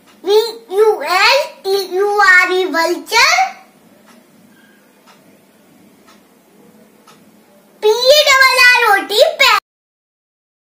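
A young boy speaks clearly and carefully close to a microphone.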